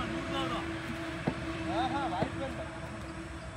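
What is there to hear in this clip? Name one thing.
A young man nearby talks with animation.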